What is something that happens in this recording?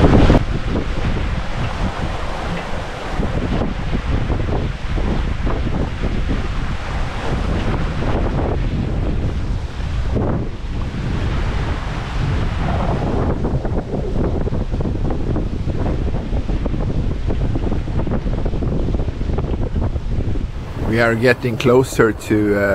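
Water rushes and splashes along the hull of a moving sailboat.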